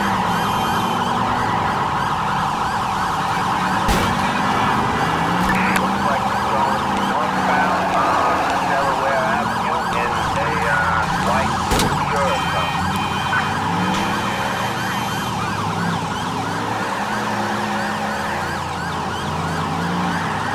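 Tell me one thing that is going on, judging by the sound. A siren wails in rising and falling sweeps.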